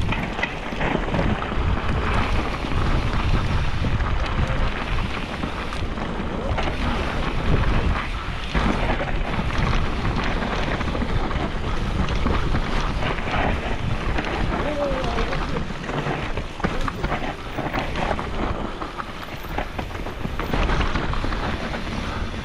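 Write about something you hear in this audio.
A bicycle frame and chain clatter over bumps.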